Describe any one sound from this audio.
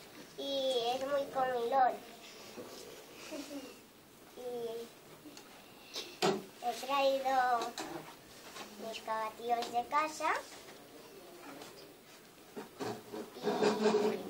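A young girl speaks nearby in a high, lively voice, reciting with pauses.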